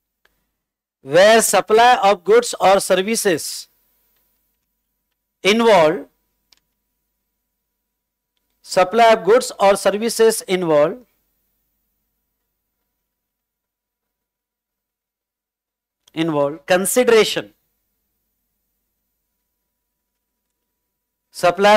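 A man speaks calmly into a clip-on microphone, in short bursts with pauses.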